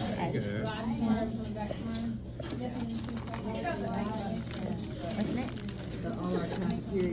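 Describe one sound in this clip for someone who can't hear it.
Many people talk in the background of a busy room.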